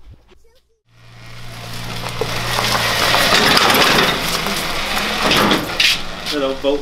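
A garage door rattles as it rolls open.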